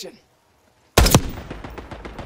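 A sniper rifle fires a single loud, sharp shot.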